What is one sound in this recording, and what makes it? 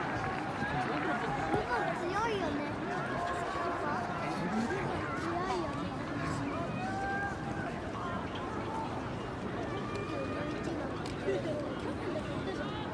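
A large crowd of people chatters and calls out across an open-air stadium.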